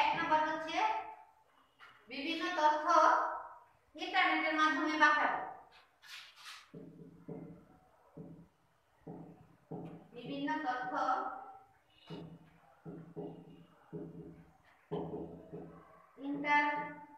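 A young woman speaks clearly and calmly, close by.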